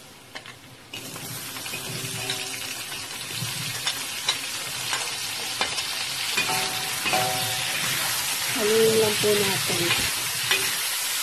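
Shrimp sizzle loudly in hot oil.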